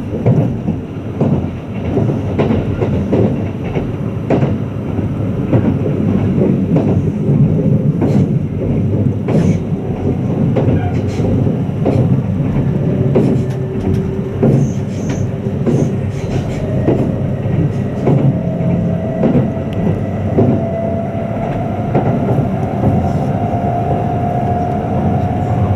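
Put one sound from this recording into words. An electric express train rumbles along at speed, heard from inside the carriage.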